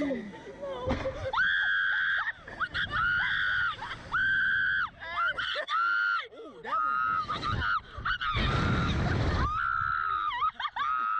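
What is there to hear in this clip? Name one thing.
A teenage girl screams loudly and at length.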